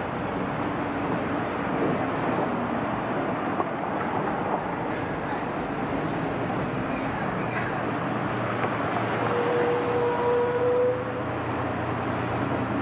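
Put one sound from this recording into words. A city bus engine rumbles steadily close by.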